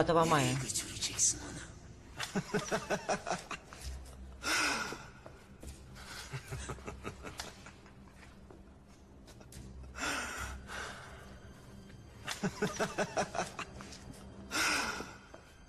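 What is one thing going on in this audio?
A man laughs softly close by.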